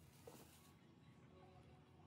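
Fresh herbs rustle as hands sort them.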